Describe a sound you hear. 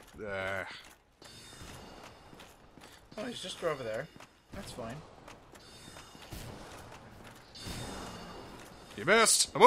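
Heavy armoured footsteps clank on a stone floor.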